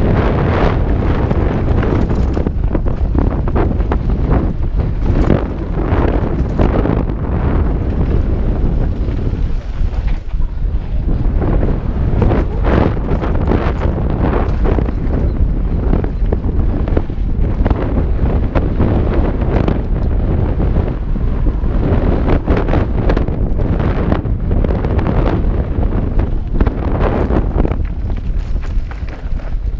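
A bicycle frame rattles and clanks over bumps.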